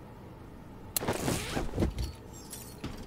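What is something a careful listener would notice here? A metal shutter door rattles open.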